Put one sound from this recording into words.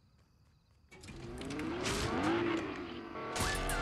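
A car engine starts and revs.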